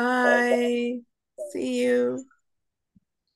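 A woman speaks in a drawn-out, sing-song way over an online call.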